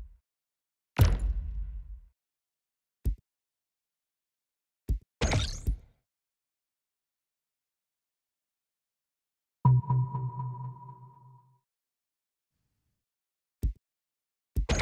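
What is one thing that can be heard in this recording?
Short game interface whooshes and clicks sound now and then.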